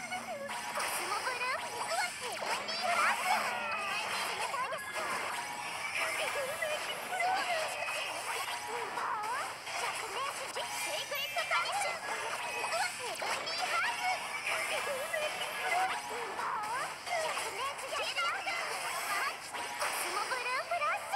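Magic blasts whoosh and crackle in quick succession.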